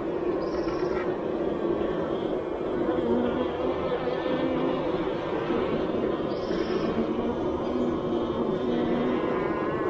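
Honeybees buzz steadily close by.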